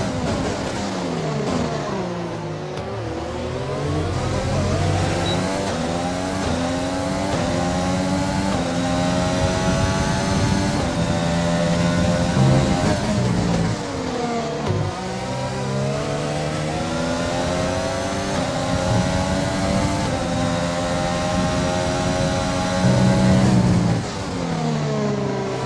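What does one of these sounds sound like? A racing car engine screams high, rising through the gears and dropping sharply when braking.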